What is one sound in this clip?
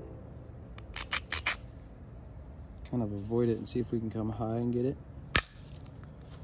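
A stone flakes off with sharp clicks as it is pressed and chipped.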